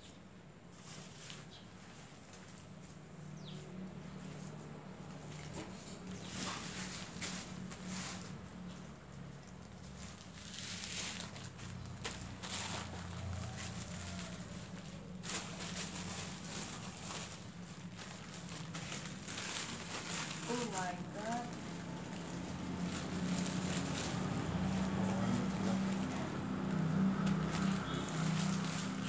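Hands scoop and press loose soil.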